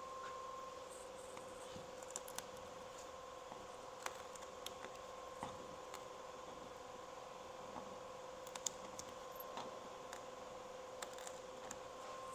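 A metal scraper scrapes softly across wood.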